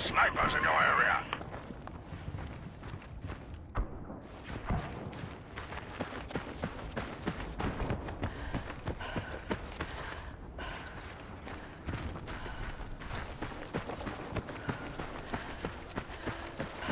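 Footsteps crunch steadily on sand and gravel.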